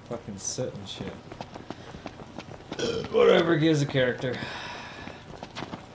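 Footsteps run quickly over dry grass and dirt.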